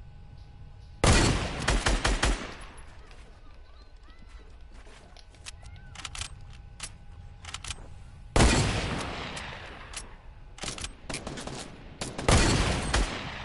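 A rifle fires loud shots that echo away.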